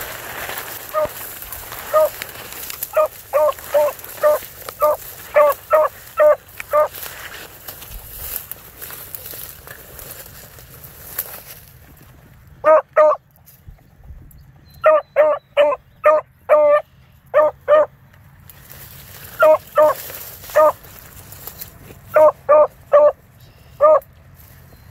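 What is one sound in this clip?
A dog bays loudly in short, repeated bursts outdoors.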